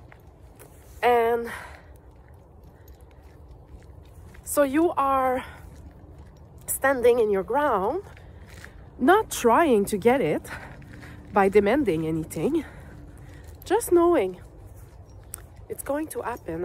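A middle-aged woman speaks close up, in short emotional bursts.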